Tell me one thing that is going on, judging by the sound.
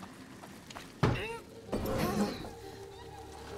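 A heavy wooden crate bangs and scrapes as it is shoved.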